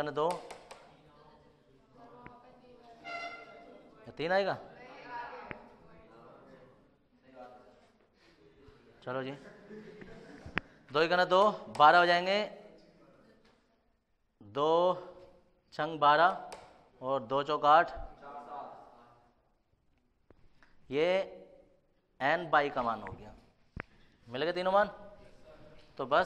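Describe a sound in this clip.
A man speaks clearly and steadily, close to a microphone, explaining.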